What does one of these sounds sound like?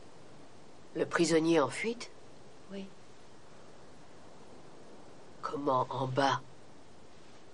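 An older woman speaks calmly nearby.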